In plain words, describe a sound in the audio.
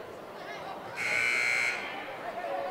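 A referee blows a sharp whistle.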